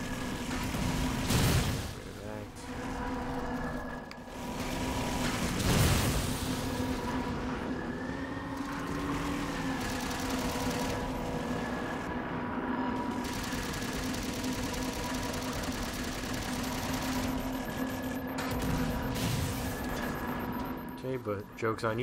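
A hovering craft's engine hums steadily.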